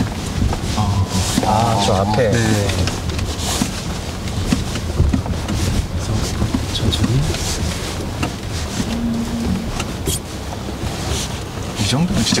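Tyres rumble and crunch over a rough dirt road.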